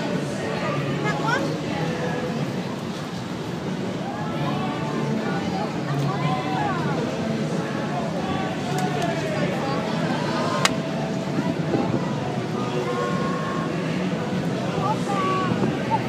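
A young girl talks and laughs.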